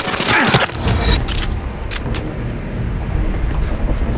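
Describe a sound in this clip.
A pistol is reloaded with a metallic click.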